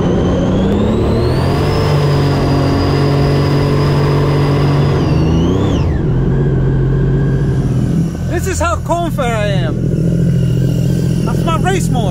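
A personal watercraft engine roars and revs up and down.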